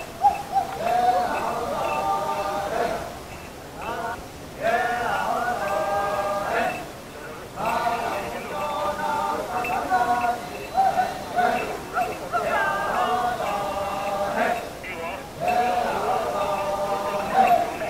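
A large group of men chants and sings together in rhythmic phrases outdoors.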